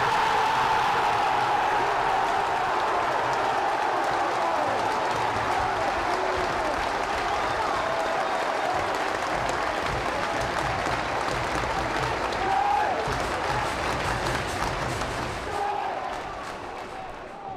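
A large crowd cheers and roars loudly, then quietens.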